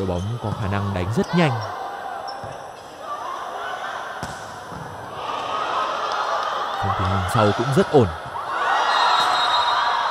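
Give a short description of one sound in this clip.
A volleyball is struck with sharp smacks.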